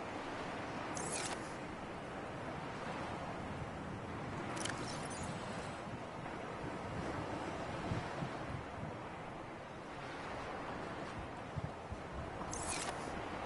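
A device gives short electronic swishes as it opens and closes.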